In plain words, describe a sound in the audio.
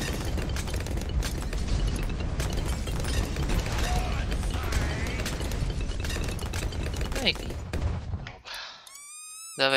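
Explosions boom and crackle in rapid bursts.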